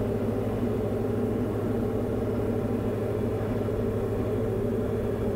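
A small plane's engine drones steadily from inside the cabin.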